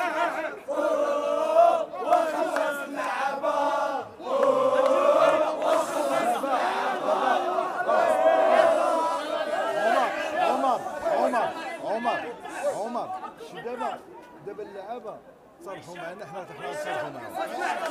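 A crowd of fans chants and sings loudly outdoors.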